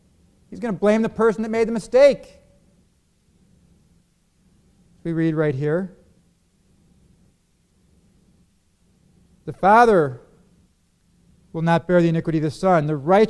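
A middle-aged man speaks deliberately through a microphone, with long pauses.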